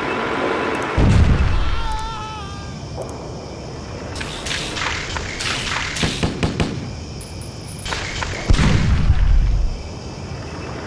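A tank cannon fires with a loud, deep boom.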